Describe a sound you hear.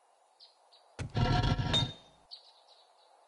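A game menu opens with a short rustling whoosh.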